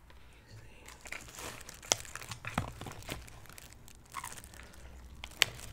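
A woman slurps noodles close to a microphone.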